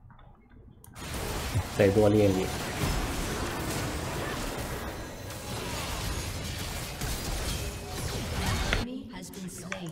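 Magic spells whoosh and crash in a fast, noisy fight.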